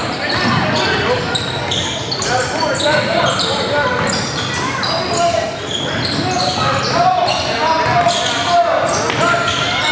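A basketball thumps as it bounces on the floor.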